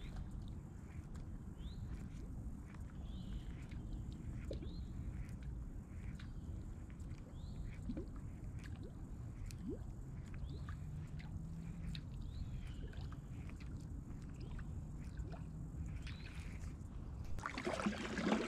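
A fishing reel ticks steadily as line is wound in.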